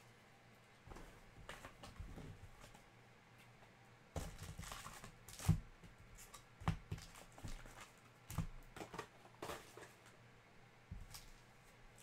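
Cardboard packaging rustles and taps as it is handled.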